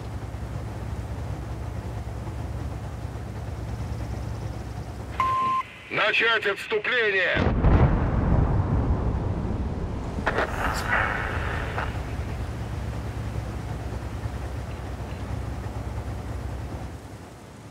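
A heavy tank engine rumbles low and steady.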